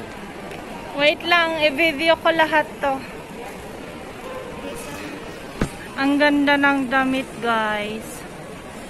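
A woman speaks nearby in a high, lively voice.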